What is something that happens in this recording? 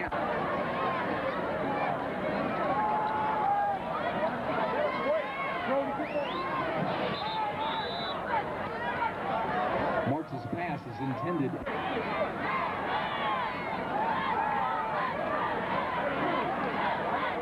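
A large crowd chatters and cheers outdoors.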